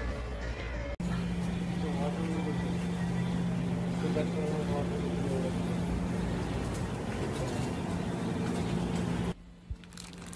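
A refrigerator hums steadily.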